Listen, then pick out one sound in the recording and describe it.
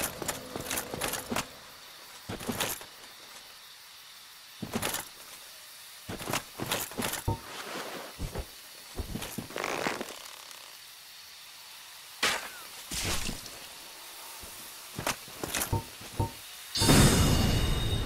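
Armoured footsteps crunch over grass and leaves.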